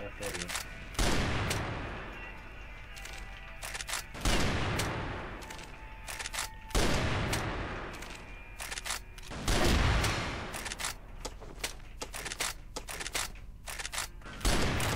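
A sniper rifle fires loud, booming shots that echo and fade.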